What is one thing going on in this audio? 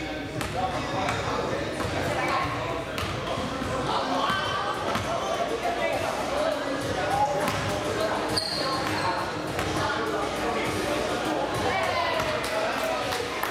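A basketball bounces on a hard floor in a large echoing hall.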